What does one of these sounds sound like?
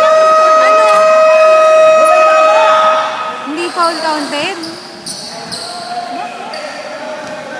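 Men call out to each other across an echoing hall.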